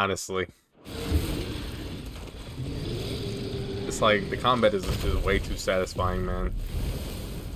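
A huge creature roars and growls deeply.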